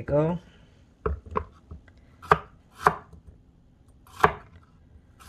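A knife chops through cucumber onto a wooden board.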